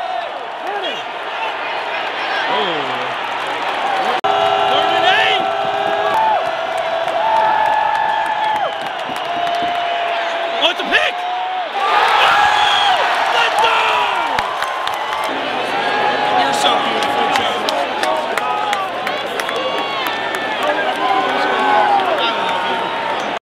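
A large stadium crowd roars and cheers loudly all around.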